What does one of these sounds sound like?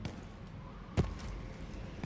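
A heavy blow lands with a sharp thud.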